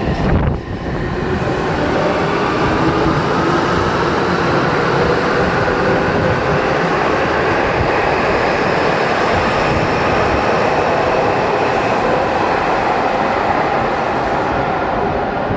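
A subway train's motors whine with a rising pitch.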